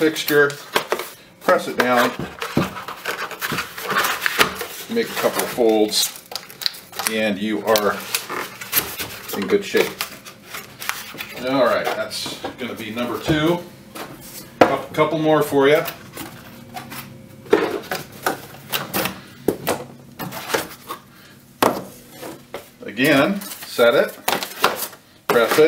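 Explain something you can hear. Cardboard scrapes and rustles as it is handled.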